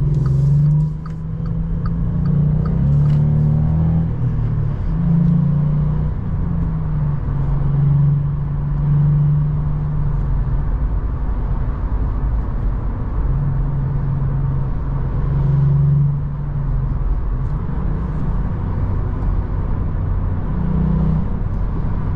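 A car engine hums and drones steadily, rising and falling in pitch as it revs.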